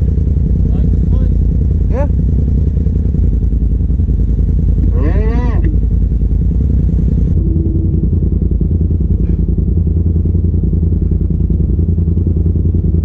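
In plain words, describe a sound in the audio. An off-road vehicle's engine rumbles steadily up close.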